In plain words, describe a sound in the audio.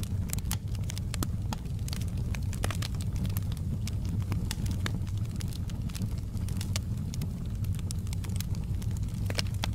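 Flames roar with a low steady rumble.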